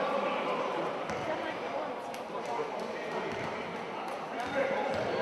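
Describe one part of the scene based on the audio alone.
A crowd murmurs throughout a large echoing hall.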